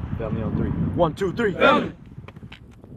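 A group of young men shout together in unison.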